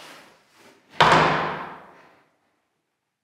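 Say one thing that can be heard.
A wooden door slams shut with a short echo.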